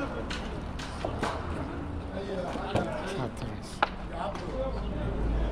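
Footsteps thud on wooden planks.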